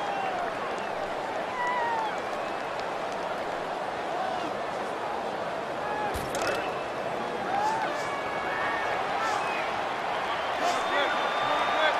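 A large stadium crowd roars and cheers steadily, with whistles rising above it.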